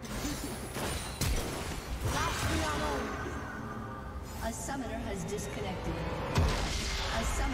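Sharp hits and blasts strike in quick bursts.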